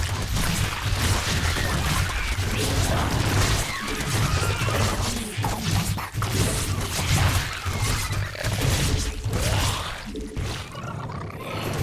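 Video game combat sounds crackle and clash rapidly.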